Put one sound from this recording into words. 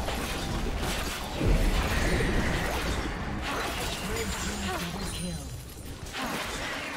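Magic spells whoosh and crackle during a video game battle.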